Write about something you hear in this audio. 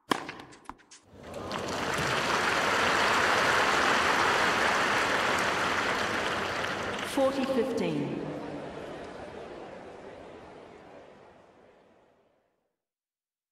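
A large crowd cheers and applauds, swelling and then slowly fading.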